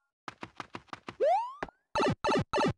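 A short rising electronic whoosh sounds as a game character drops into a pipe.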